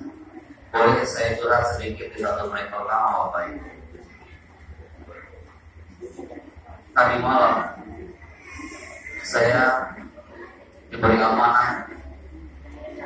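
A man speaks into a microphone with animation, heard through a loudspeaker in an echoing room.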